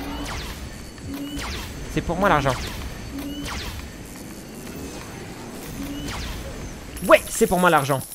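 Energy blasts zap and crackle.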